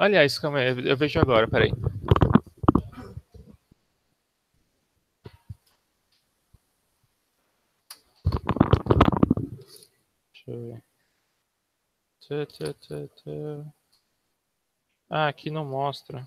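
A young man speaks through a headset microphone on an online call, in short bursts with pauses.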